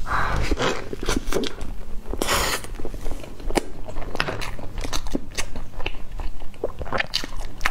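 A woman chews crisp pastry close to a microphone.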